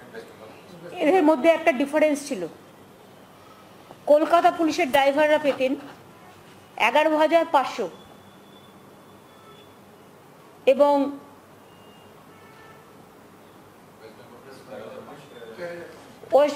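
A woman reads out a statement into a microphone in short bursts with pauses.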